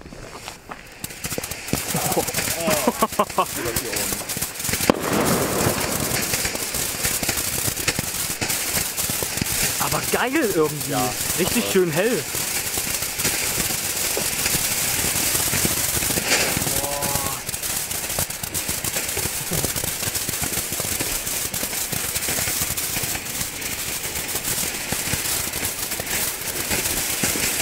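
A firework fountain hisses and crackles loudly.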